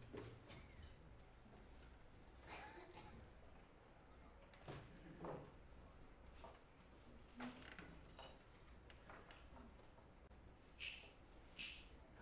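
Small objects clack on a wooden table.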